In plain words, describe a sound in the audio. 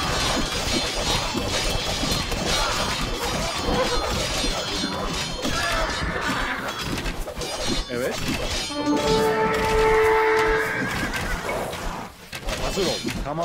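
Swords clash and clang in a busy battle.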